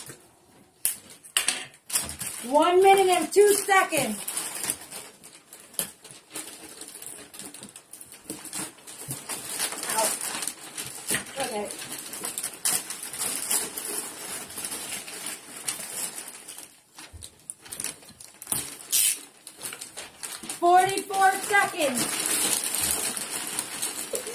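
Wrapping paper crinkles and tears as presents are unwrapped.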